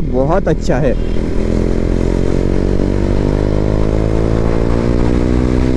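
A motorcycle engine drones steadily at cruising speed.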